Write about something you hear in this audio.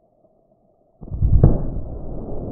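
A watermelon bursts apart with a deep, booming thud.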